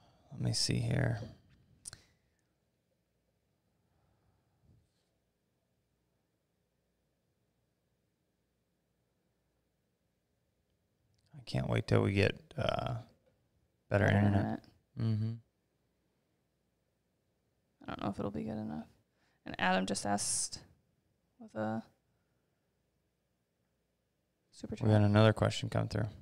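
A young man speaks calmly close to a microphone, in short bursts with pauses.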